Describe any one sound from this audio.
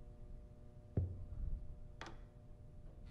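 A door latch clicks and the door swings open.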